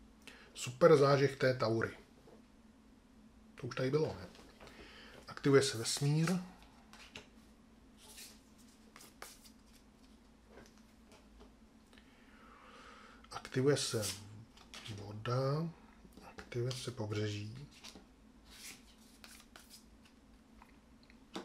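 Playing cards slide and tap on a table.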